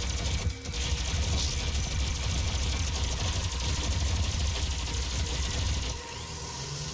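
A plasma gun fires crackling energy bursts.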